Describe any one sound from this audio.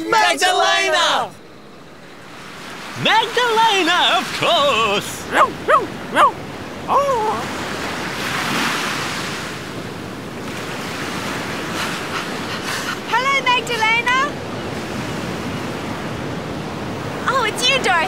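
Men sing together cheerfully.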